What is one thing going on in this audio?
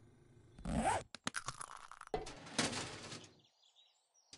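A metal drawer rattles open.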